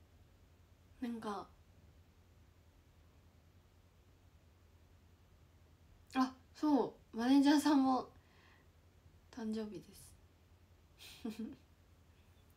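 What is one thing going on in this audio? A young woman speaks softly in short bursts, close to a microphone.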